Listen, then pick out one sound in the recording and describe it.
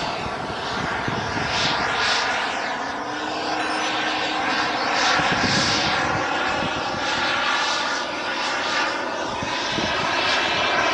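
A jet aircraft roars overhead, its sound swirling as it passes.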